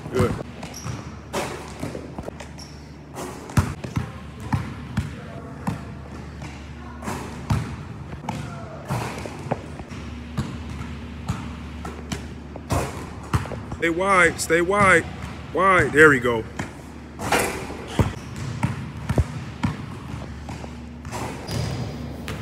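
A basketball slams through a hoop and rattles the rim.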